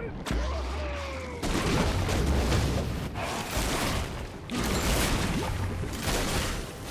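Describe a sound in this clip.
Game spell effects and attacks crackle and boom in a dense clash.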